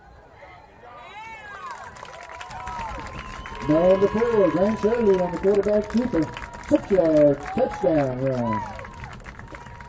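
A crowd of young men cheers and shouts outdoors after a play.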